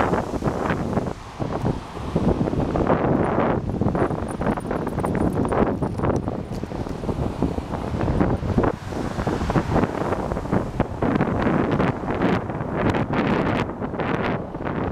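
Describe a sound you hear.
Waves crash and wash against rocks.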